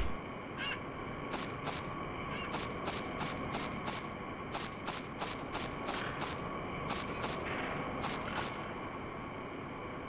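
Footsteps tap along the ground.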